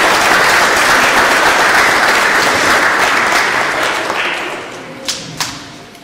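A crowd claps steadily in a large echoing room, then fades.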